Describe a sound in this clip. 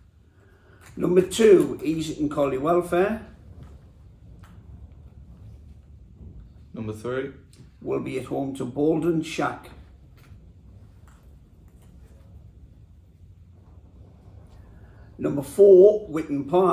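An elderly man reads out calmly nearby.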